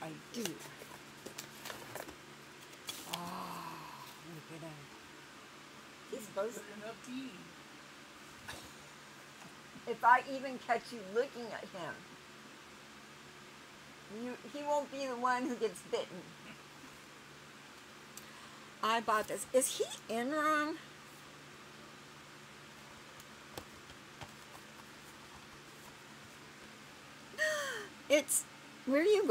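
An older woman talks casually close by, in short bursts.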